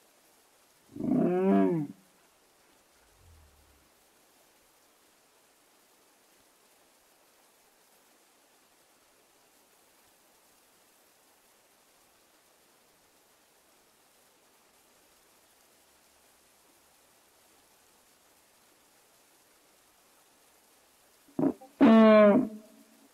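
A dog-like creature lets out short, bending cries.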